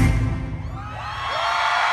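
Loud music with a heavy beat plays and cuts off.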